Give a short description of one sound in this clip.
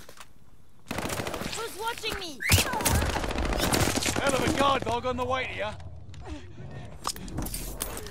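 Gunshots crack close by in short bursts.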